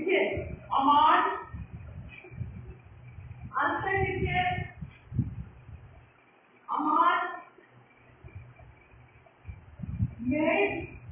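A middle-aged woman speaks calmly in short phrases, close by.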